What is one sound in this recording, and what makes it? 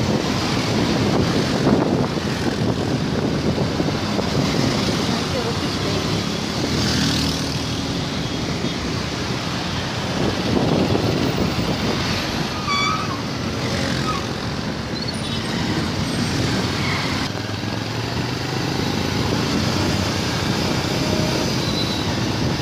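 Car and motorbike tyres hiss on the road.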